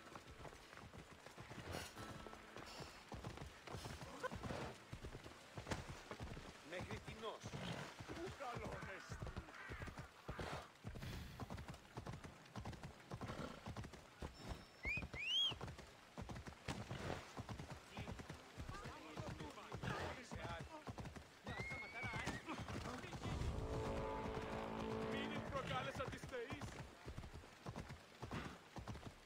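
A horse gallops, its hooves clattering quickly on stone.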